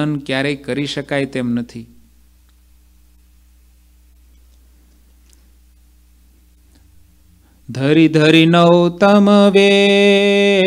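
A man recites in a melodic chant into a close microphone, pausing in between.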